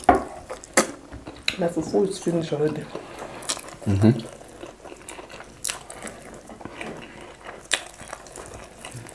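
Wet food squelches between fingers.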